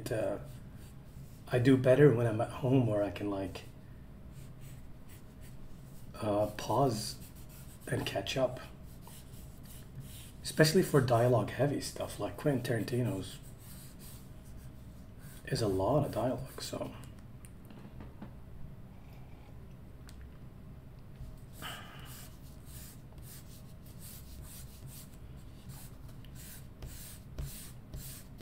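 A pencil scratches and scrapes on paper.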